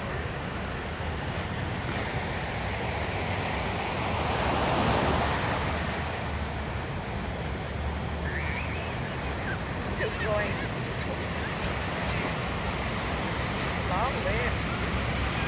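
Ocean waves break and wash steadily nearby.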